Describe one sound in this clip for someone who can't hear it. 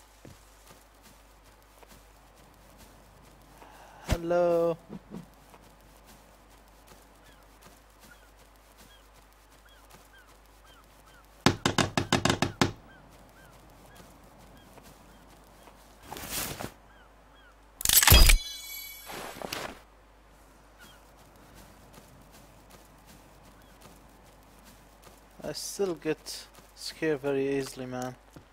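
Footsteps shuffle on soft sand.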